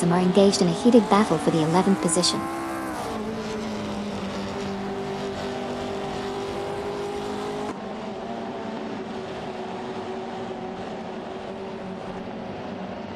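A racing car engine roars at a steady pitch.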